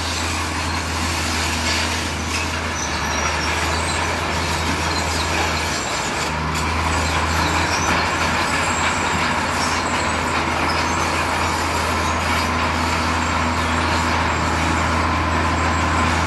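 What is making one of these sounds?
Rocks and dirt slide and tumble out of a dump truck.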